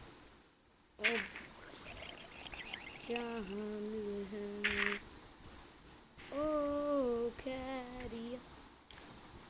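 A boy speaks close to a phone microphone.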